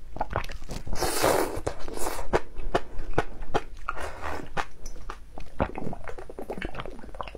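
A young woman slurps and sucks jelly from a tube close up.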